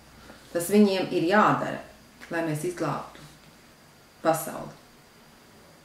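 A middle-aged woman reads aloud calmly, close by.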